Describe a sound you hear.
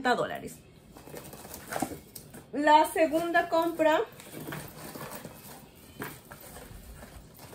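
Paper crinkles and rustles as it is pulled from a box.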